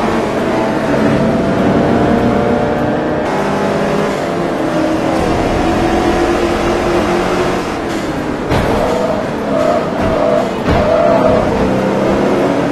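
Several V8 racing cars roar past at full throttle.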